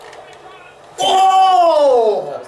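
Young men shout and cheer loudly.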